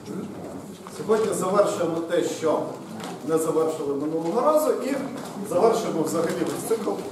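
A man speaks with animation in an echoing room.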